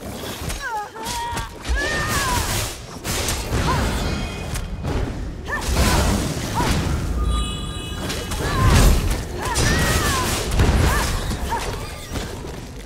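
Giant spiders screech and hiss.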